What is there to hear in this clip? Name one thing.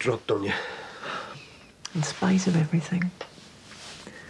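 A woman speaks softly and urgently close by.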